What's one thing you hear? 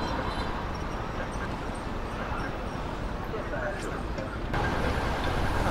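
Street traffic hums steadily nearby.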